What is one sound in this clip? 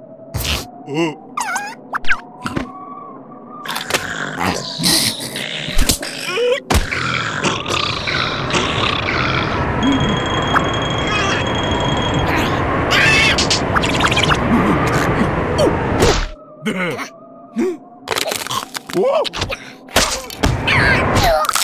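Small cartoon creatures squeak and babble in high, silly voices.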